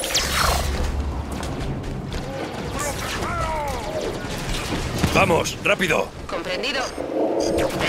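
A glowing energy sword swings with a crackling hum.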